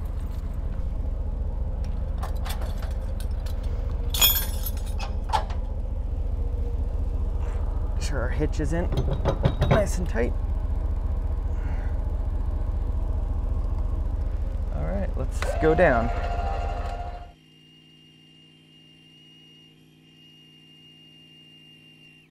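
A metal chain clinks and rattles.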